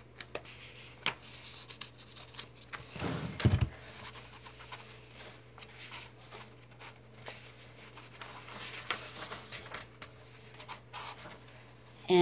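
Pages of a book rustle as they are turned.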